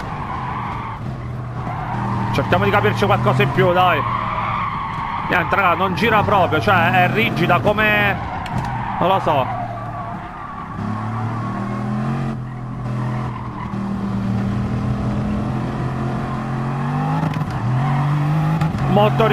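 A racing car engine roars at speed, dropping as it slows for a corner and rising again as it speeds up.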